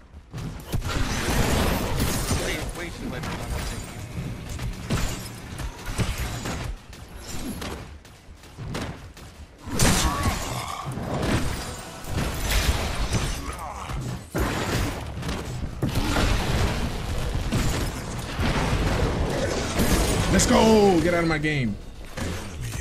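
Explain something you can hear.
Game combat effects clash and burst with heavy blows.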